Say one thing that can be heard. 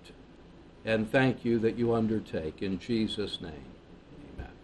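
An elderly man speaks calmly through a microphone.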